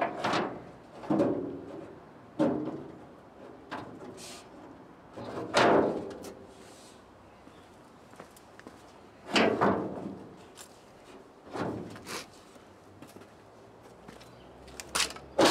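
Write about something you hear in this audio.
A metal panel knocks and clanks against a trailer.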